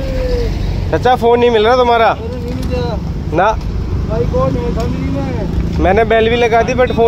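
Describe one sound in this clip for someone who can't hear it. An elderly man shouts in distress close by.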